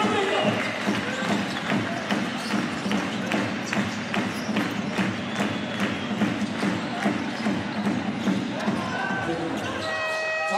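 A basketball bounces rhythmically on a hard court in a large echoing hall.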